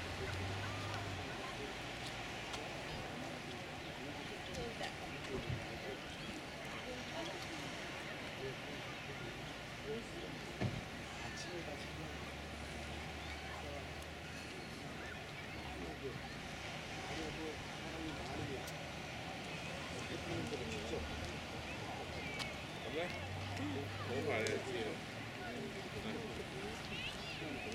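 Wind blows steadily outdoors, rustling nearby bushes.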